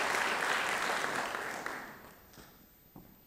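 An audience applauds in a large hall, and the clapping dies away.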